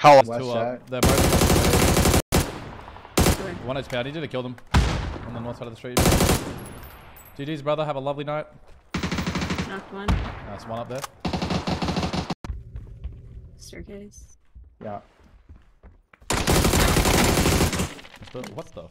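Rapid gunfire crackles in loud bursts.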